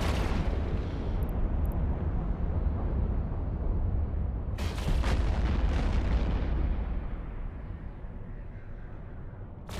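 A deep engine rumble drones steadily, then eases off.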